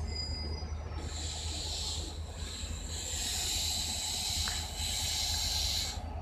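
A train rolls away along the rails.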